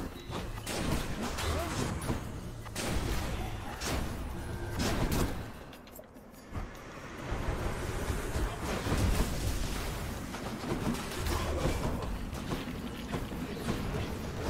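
Quick magical blasts and hits crackle and thud in a fight.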